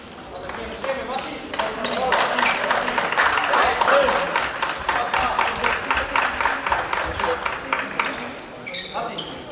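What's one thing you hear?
A small crowd claps in quick rhythm in a large echoing hall.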